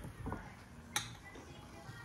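Glasses clink together.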